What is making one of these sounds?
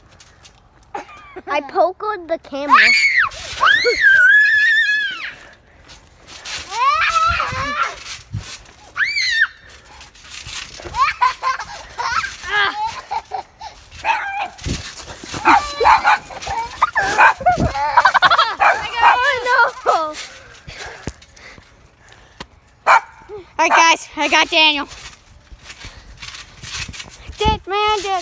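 A boy talks and laughs excitedly close by.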